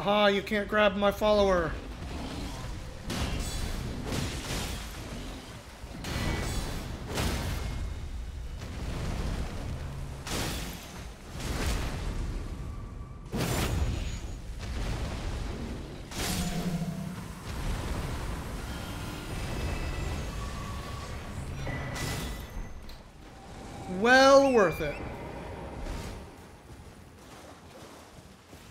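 Sword blows clash and thud in a game battle.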